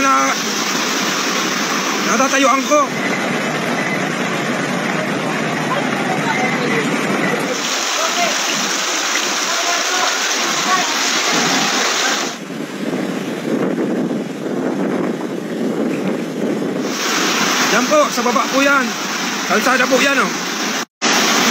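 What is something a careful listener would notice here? Floodwater rushes and roars.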